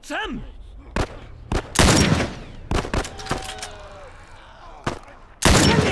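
Rifle shots crack loudly, one after another.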